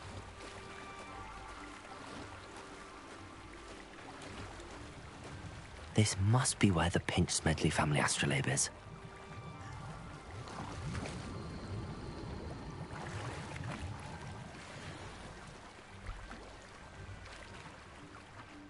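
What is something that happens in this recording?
Water splashes steadily as a swimmer strokes through it.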